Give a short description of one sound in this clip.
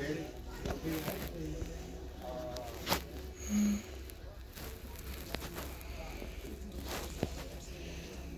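A young girl talks quietly close by.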